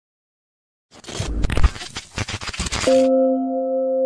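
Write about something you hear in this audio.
Static crackles and hisses loudly.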